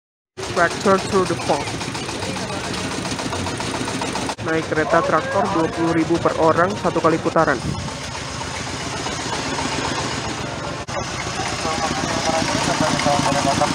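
A tractor engine idles and rumbles nearby.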